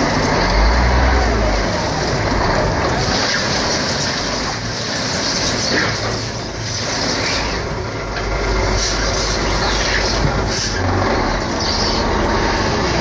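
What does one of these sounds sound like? Dirt and gravel pour and rattle out of a tipping truck bed.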